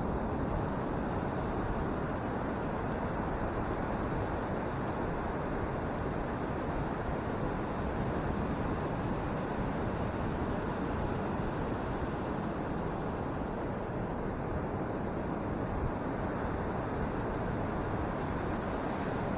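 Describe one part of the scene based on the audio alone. Wind blusters across the microphone outdoors.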